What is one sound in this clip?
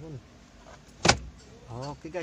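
A glove box lid snaps shut with a sharp click.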